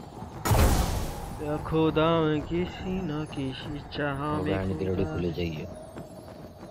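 A young man talks with animation into a headset microphone.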